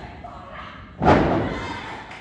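A wrestler's body slams onto a wrestling ring mat with a loud thud.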